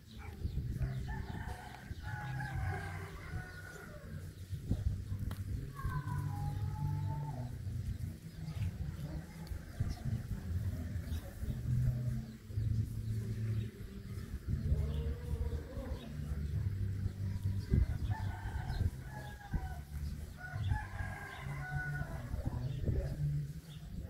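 Young dogs whine and yelp close by.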